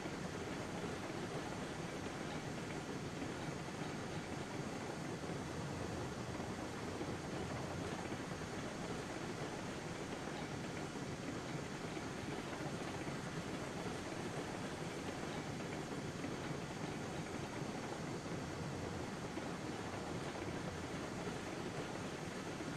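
A small steam locomotive rumbles steadily along the track.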